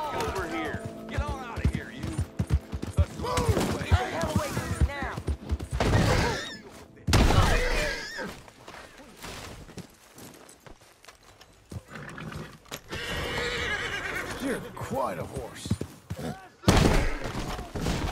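Horse hooves thud at a gallop on soft ground.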